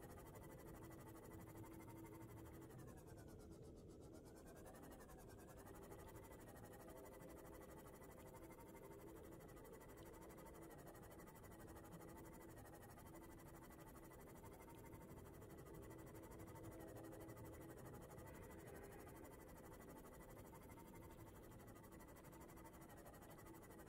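A small submarine's engine hums steadily underwater.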